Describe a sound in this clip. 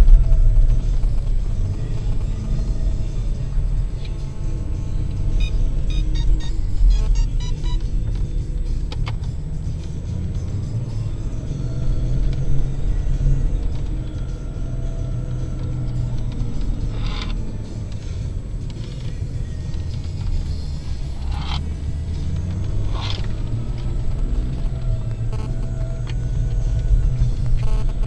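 Tyres rumble over soft sand.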